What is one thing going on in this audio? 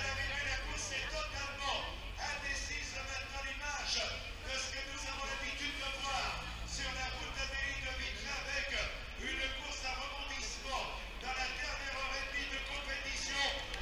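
A crowd of spectators murmurs outdoors.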